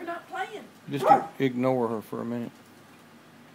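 A dog whines and howls in a high pitch.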